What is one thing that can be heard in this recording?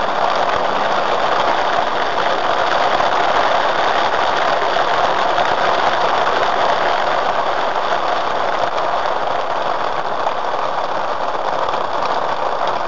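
Tyres hiss steadily on a wet road as a car drives along.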